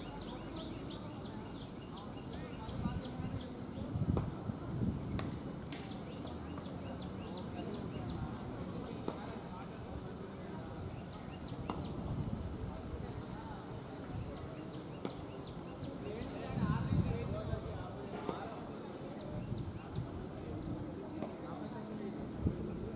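Several men talk and call out together in a close huddle outdoors.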